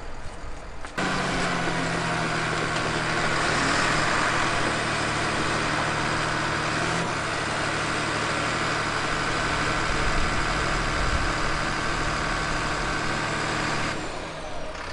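A bulldozer engine rumbles steadily close by.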